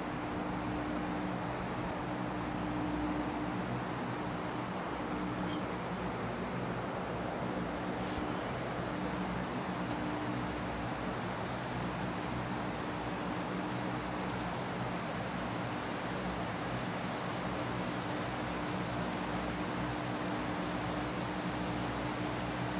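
A low murmur of distant voices echoes through a large hall.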